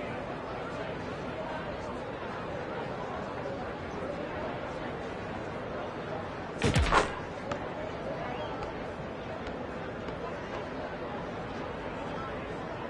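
A crowd murmurs steadily in the background.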